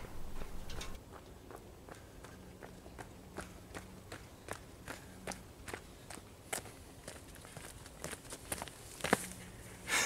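Footsteps crunch on a gravel path, coming steadily closer.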